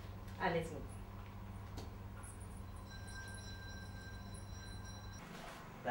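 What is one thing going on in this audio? A young woman speaks quietly nearby.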